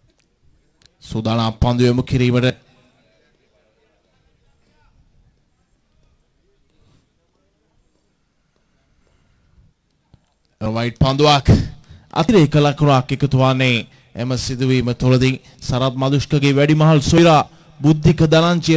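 A man commentates with animation over a microphone.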